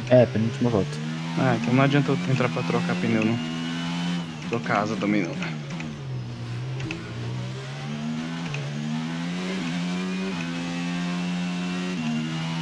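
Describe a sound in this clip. A racing car engine whines loudly, rising and dropping in pitch through the gear changes.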